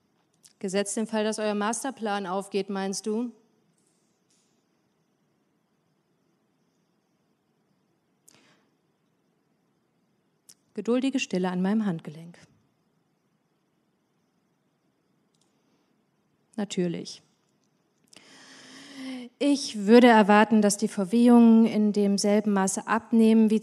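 A young woman speaks calmly into a microphone, with pauses.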